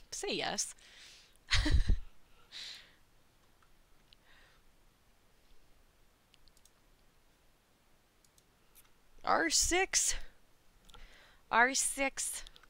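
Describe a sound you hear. A young woman speaks brightly and animatedly into a close microphone.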